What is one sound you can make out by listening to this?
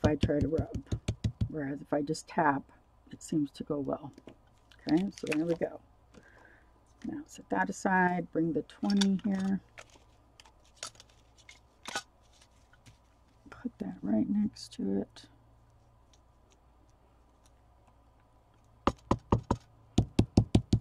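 A foam dauber taps rapidly on paper.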